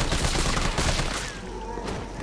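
A rifle fires a burst of shots.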